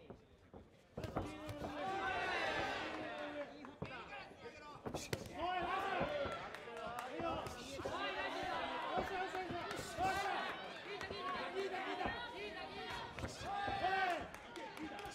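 Punches and kicks land on bodies with sharp thuds.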